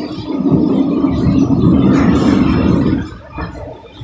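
Wind rushes past an open window.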